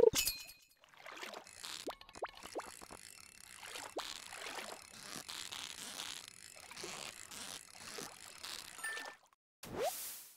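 A fishing reel clicks and whirs steadily as a line is reeled in.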